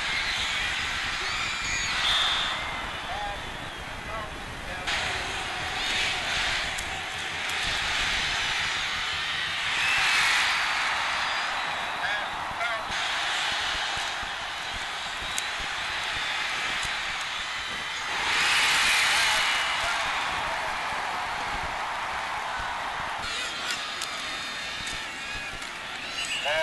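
A large stadium crowd roars and cheers, swelling loudly at times.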